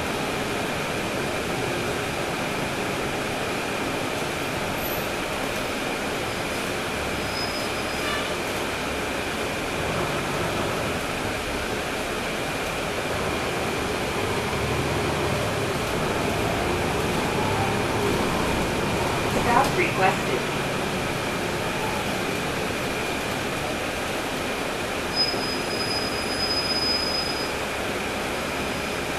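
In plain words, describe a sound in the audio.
The bus rattles as it rolls over the street.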